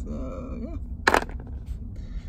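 A small stone drops into a plastic pan with a sharp clack.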